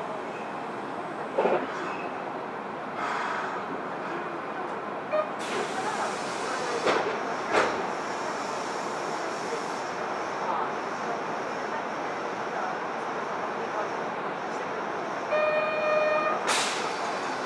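A stopped subway train hums steadily in an echoing underground station.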